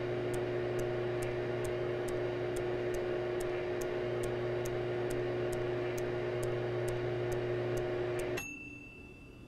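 A microwave oven hums steadily as it runs.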